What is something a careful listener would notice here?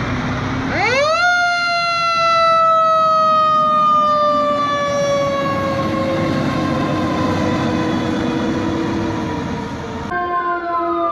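A fire truck's air horn blasts loudly and slowly falls in pitch.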